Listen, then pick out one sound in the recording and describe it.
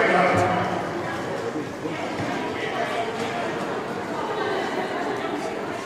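Many people talk and shout in a large echoing hall.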